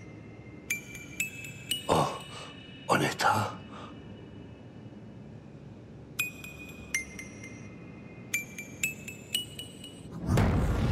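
Small metal taps ring out sharply, several times.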